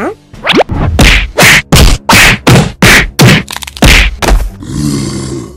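Heavy punches land with loud whooshing thuds.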